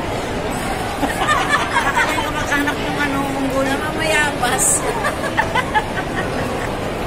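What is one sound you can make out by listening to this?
Middle-aged women laugh and chatter with animation.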